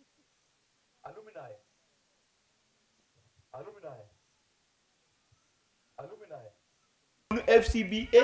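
An elderly man talks in short phrases.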